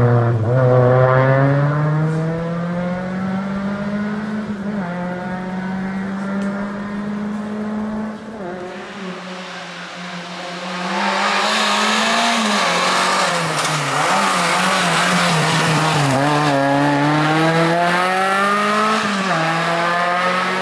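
A rally car engine revs hard and roars as the car races along the road.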